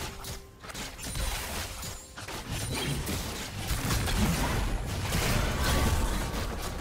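Magic spells whoosh and crash in a hectic video game battle.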